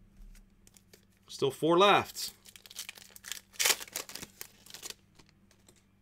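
A plastic card wrapper crinkles and rustles close by.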